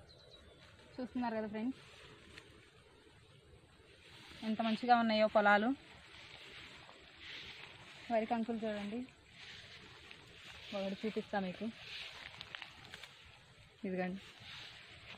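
A young woman speaks calmly close by, in short phrases.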